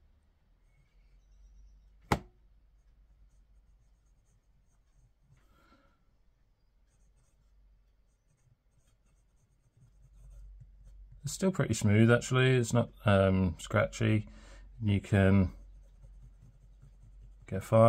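A pen nib scratches softly on paper.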